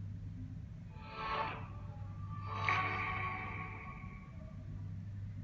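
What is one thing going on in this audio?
A short electronic chime plays from a small handheld speaker.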